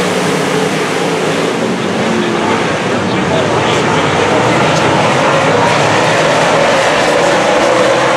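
Race car engines roar loudly around a dirt track outdoors.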